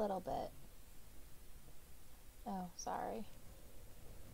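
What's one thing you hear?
A young woman speaks briefly into a microphone, close by.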